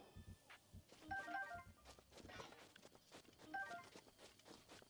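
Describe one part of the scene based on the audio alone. A bright chime rings as items are picked up.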